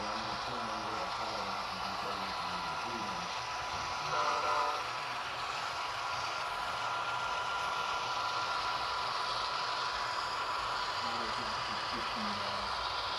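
A model train rumbles steadily along its track.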